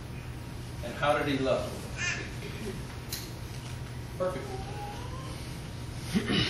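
A man speaks to an audience in short bursts with pauses.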